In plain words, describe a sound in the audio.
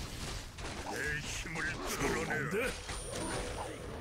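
A magic bolt crackles and zaps.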